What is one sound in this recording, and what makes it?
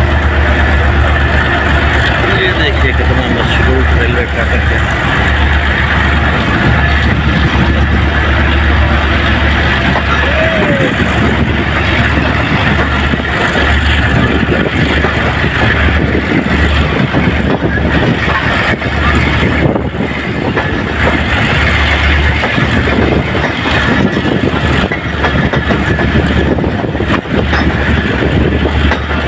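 Wind buffets loudly from outside a moving train.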